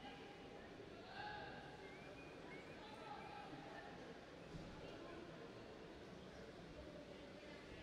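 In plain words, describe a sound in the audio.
Several people chat and murmur in a large echoing hall.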